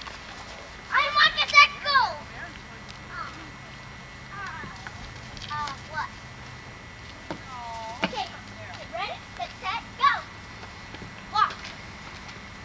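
A small child babbles and squeals.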